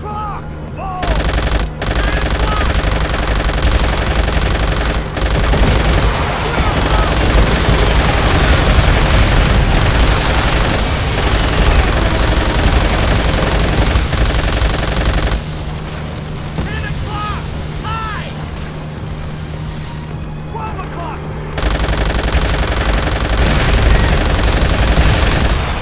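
A turret machine gun fires in long, loud bursts.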